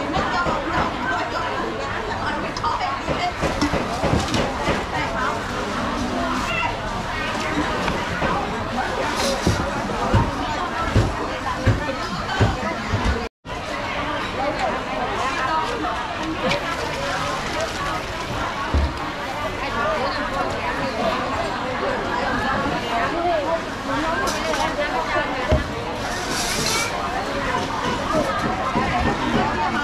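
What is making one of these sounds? A crowd of many people chatters nearby.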